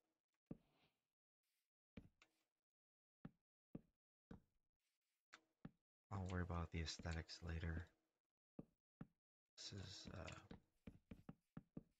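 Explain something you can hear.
Wooden blocks are placed with short, dull knocks.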